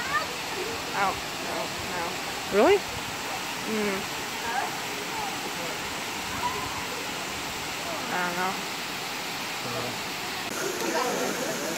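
Young men and women chatter and call out nearby outdoors.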